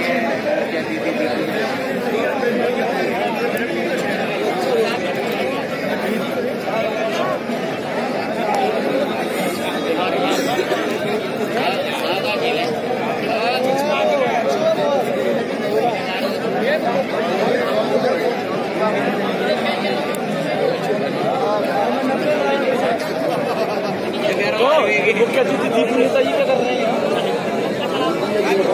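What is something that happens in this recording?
A large outdoor crowd chatters and shouts continuously.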